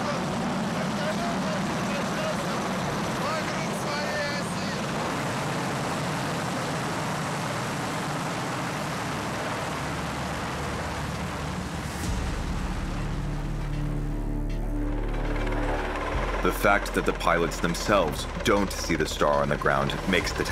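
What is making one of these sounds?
Helicopter rotors roar and thump overhead.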